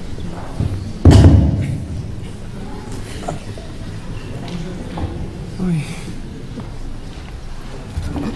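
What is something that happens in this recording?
A musician plays sparse, sudden knocks and thuds in a large echoing hall.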